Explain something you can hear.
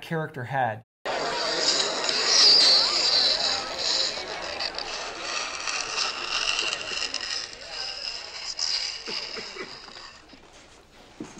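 A crowd murmurs and chatters in a room.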